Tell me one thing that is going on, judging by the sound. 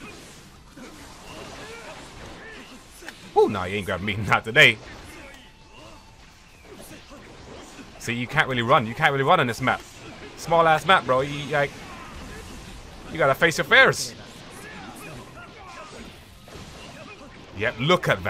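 Blows land with sharp impacts and whooshes.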